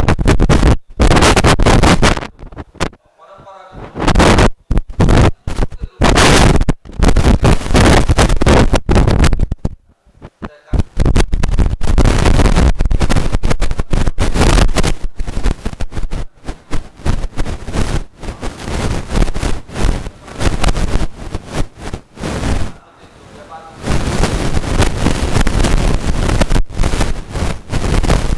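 A middle-aged man speaks loudly into a microphone, heard through a loudspeaker in an echoing room.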